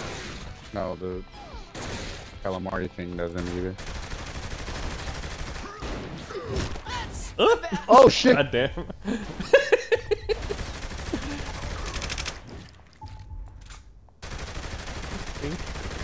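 Guns fire in quick bursts of shots.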